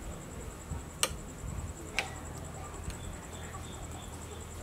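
A spoon scrapes and clinks against a plate.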